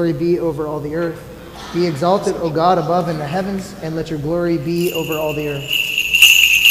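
A man chants in a low, sung voice in a large echoing hall.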